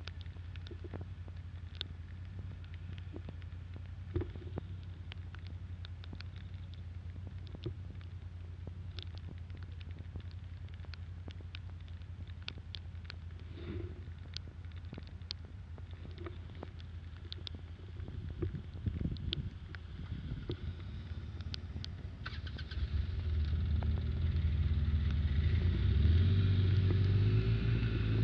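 Raindrops tap on a windshield.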